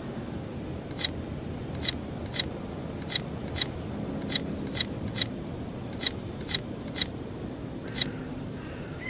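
Short clicks sound as puzzle pieces snap into place.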